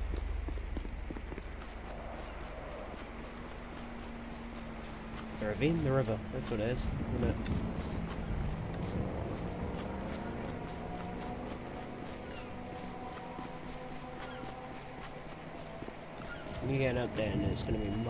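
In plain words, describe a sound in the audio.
Footsteps crunch steadily through grass.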